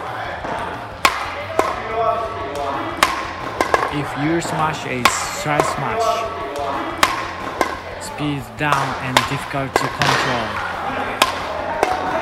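A badminton racket smacks a shuttlecock at a steady pace in an echoing hall.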